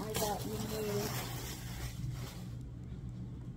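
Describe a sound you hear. Fabric rustles as a blanket is shaken and unfolded.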